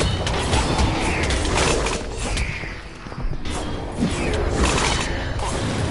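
Magic spell effects whoosh and sparkle.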